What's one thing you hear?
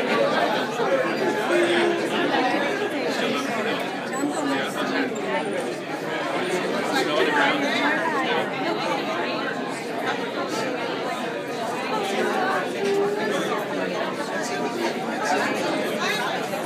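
A group of people chat in the background of a room.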